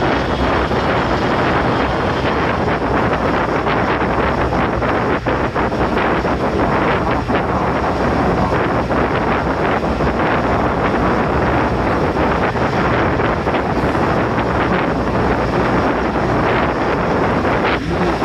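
A train rumbles steadily along the tracks at speed.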